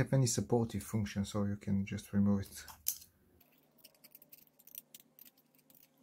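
A small screwdriver scrapes against a metal screw.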